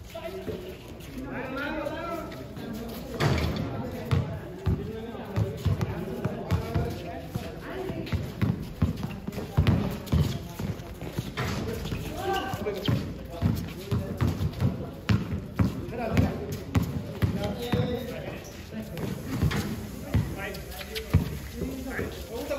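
Sneakers squeak and scuff on the court.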